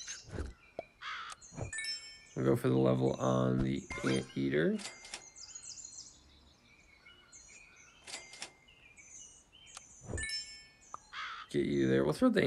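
Short electronic game sounds chime and pop.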